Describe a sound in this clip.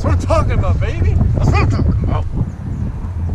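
A young man speaks up close, with animation.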